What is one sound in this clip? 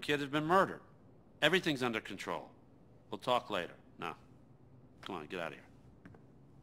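A man speaks calmly and firmly, up close.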